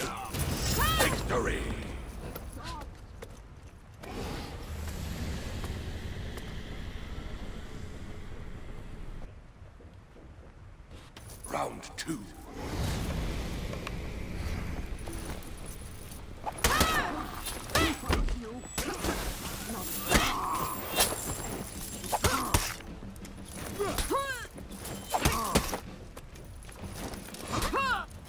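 Metal blades clash and ring in a sword fight.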